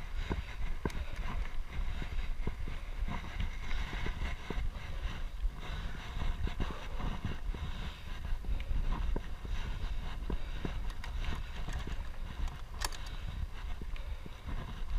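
A bicycle frame rattles and clicks over bumps.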